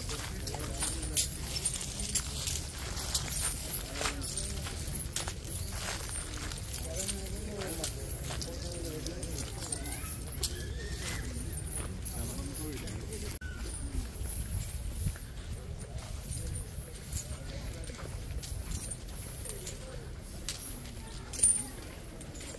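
Metal chains clink and rattle as an elephant walks.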